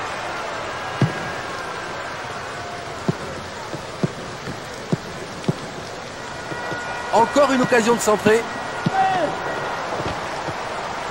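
A football is kicked with sharp, dull thuds.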